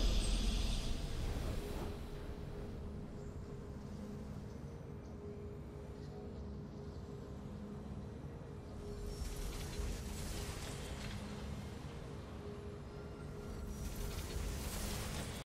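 Soft, steady game music plays.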